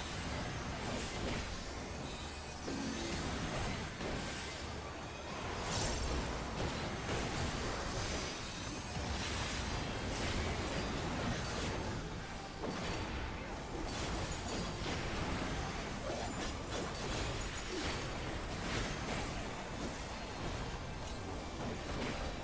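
Game spells burst and crackle with loud effects.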